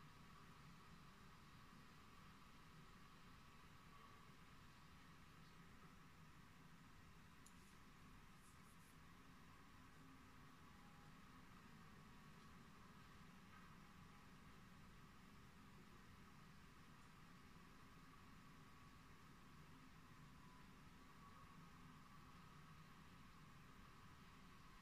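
A rotisserie grill hums steadily and very faintly.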